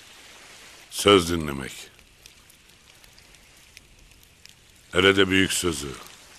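An older man speaks slowly and calmly, close by.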